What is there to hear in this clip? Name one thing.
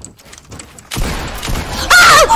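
A gun fires rapidly.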